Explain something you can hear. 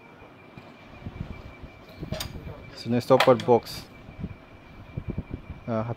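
A metal lever clicks and rattles as it is moved by hand.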